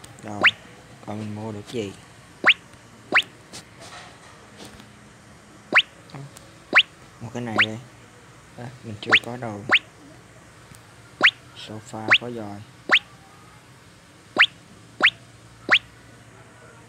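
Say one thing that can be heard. Short rising electronic blips sound again and again.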